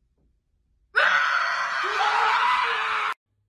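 A woman shrieks in fright up close.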